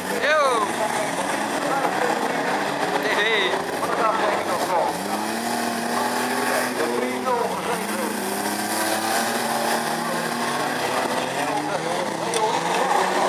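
Car engines roar and rev loudly as cars race around.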